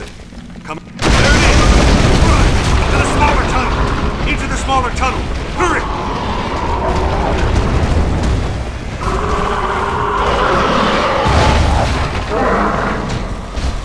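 Rock rumbles and crashes loudly as a tunnel caves in.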